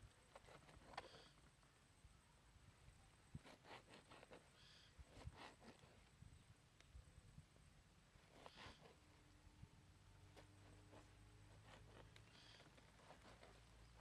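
A knife taps on a cutting board, chopping in short bursts.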